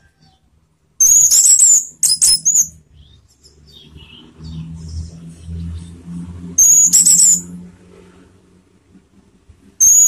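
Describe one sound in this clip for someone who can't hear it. A caged songbird sings loud, shrill whistling phrases close by.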